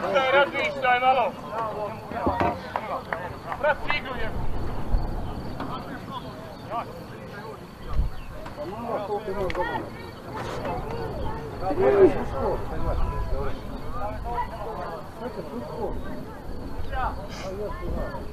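Young men shout to each other from across an open field.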